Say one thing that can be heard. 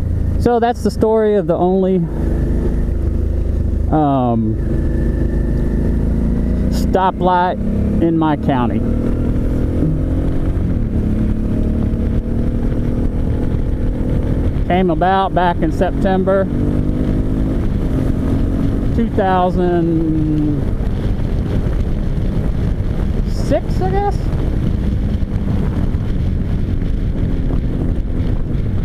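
A motorcycle engine drones steadily and revs up and down with gear changes.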